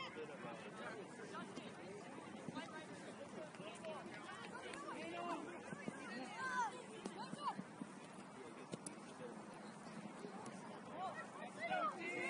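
Young players shout and call to each other across an open field, some way off.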